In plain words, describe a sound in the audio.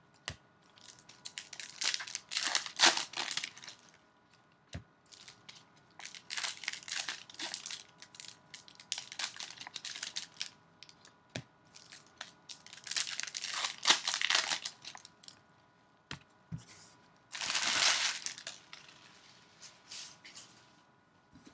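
Gloved hands tear open plastic card wrappers with crinkling.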